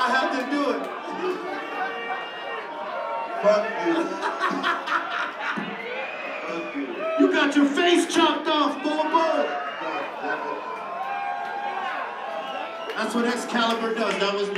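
A man raps into a microphone over the music.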